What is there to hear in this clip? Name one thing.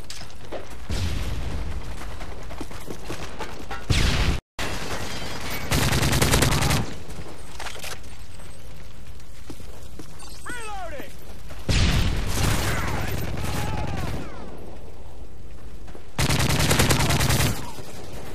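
Rapid gunfire rattles loudly in short bursts.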